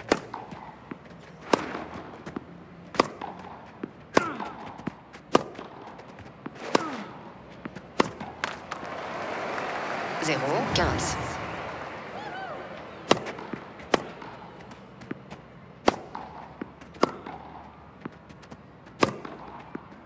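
Tennis balls are struck hard with rackets, back and forth in a quick rally.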